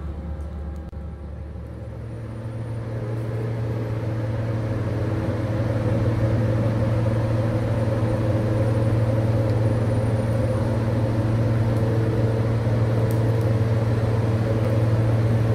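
A heavy off-road vehicle's engine rumbles steadily, growing louder as it nears.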